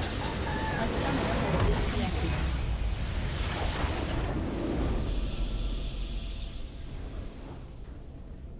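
A large crystal shatters and explodes with booming game sound effects.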